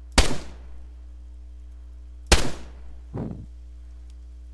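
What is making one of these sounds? A rifle fires loud, sharp shots that echo away.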